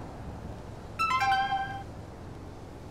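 A short electronic chime rings out.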